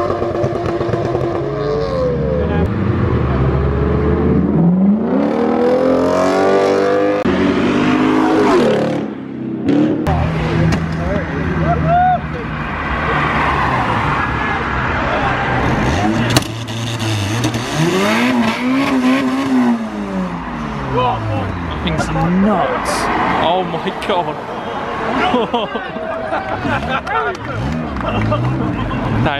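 Car engines rev loudly and roar past on a wet road.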